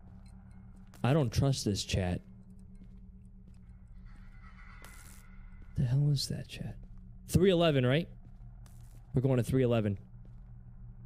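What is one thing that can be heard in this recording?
A young man speaks close to a microphone, with animation, in short bursts.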